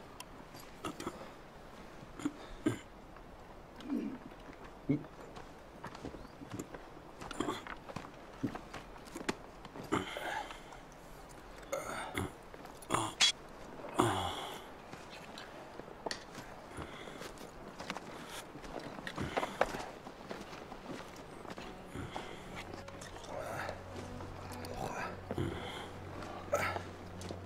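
Leather armour and metal fittings creak and clink as men move.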